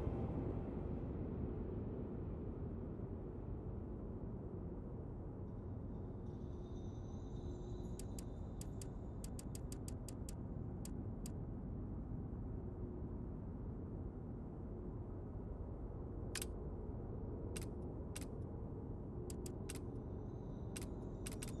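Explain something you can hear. A low, steady drone hums throughout.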